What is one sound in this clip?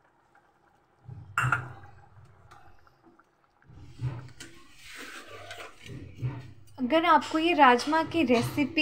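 Soup simmers and bubbles gently in a pot.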